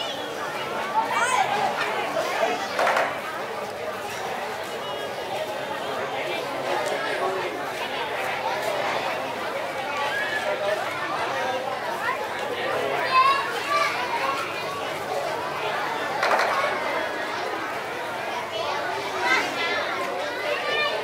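Children talk and call out close by.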